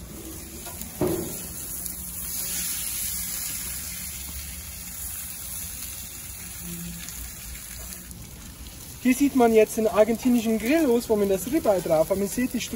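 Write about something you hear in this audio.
Metal tongs clink against a grill grate.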